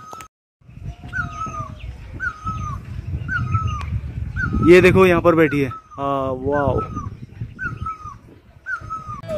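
A bird in a tree calls over and over with a short, rising and falling whistle.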